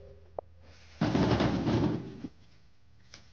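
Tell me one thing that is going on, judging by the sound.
Corn ears tumble out of a basket onto a metal truck bed.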